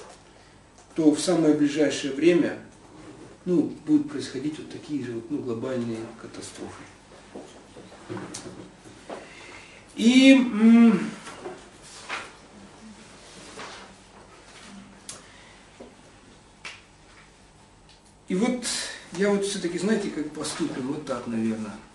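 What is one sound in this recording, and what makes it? A middle-aged man speaks close by, reading aloud with pauses.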